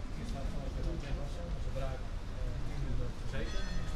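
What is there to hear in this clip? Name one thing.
Several people chat at a distance outdoors.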